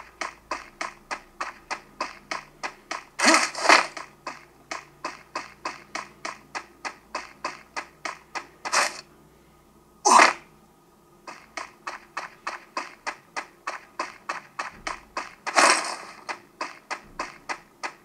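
Footsteps of a running character in a video game patter quickly and evenly.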